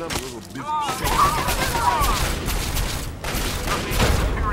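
A laser gun fires in rapid bursts.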